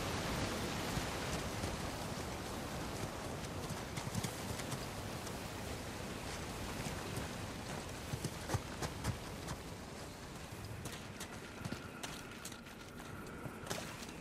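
Footsteps run quickly through grass and over stone.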